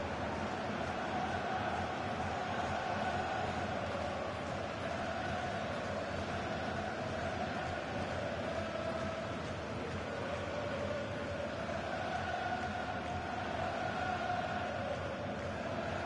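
A large stadium crowd sings and cheers steadily.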